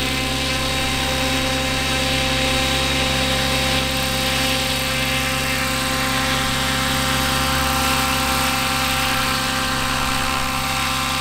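A model helicopter's rotor blades whir and thump steadily.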